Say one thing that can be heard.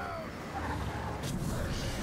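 Footsteps scuff across stone roof tiles.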